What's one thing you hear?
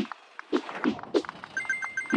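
Short bright chimes ring as coins are collected in a video game.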